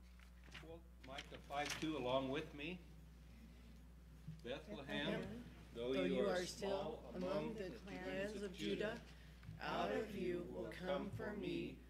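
A small group of older men and women sing together into microphones.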